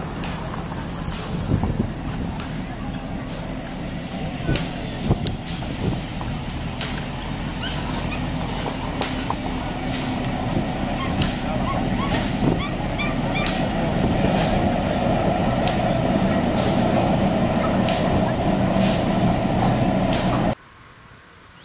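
A diesel locomotive's engine drones as it approaches, growing louder.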